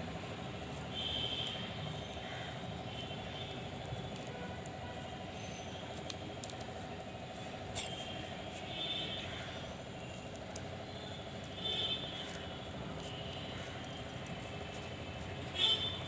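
Glass bangles clink softly on a wrist.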